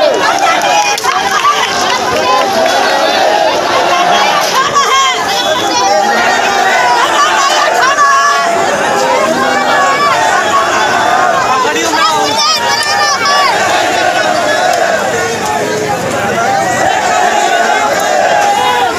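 A large crowd of men shouts and chants loudly outdoors.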